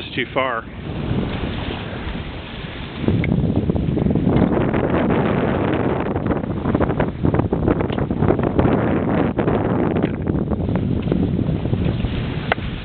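Wind blows hard against the microphone outdoors.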